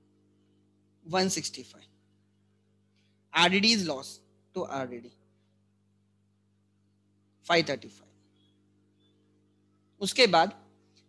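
A young man speaks calmly in short phrases, close to a microphone.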